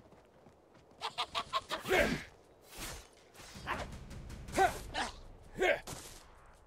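Sword blows strike and clash in a fight.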